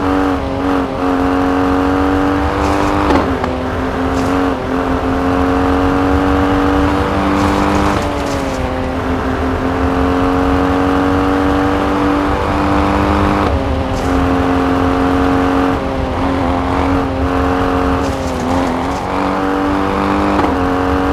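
Tyres crunch over snow and gravel.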